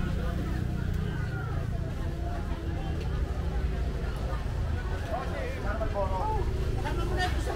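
Men and women chatter at a distance in a lively crowd.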